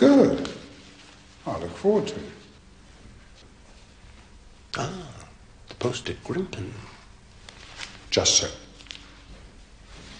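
An older man answers calmly, close by.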